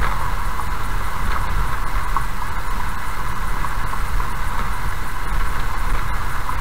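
Tyres rumble steadily on a gravel road.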